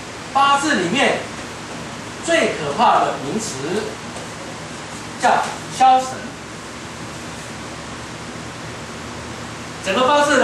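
A man speaks into a microphone, in bursts with pauses.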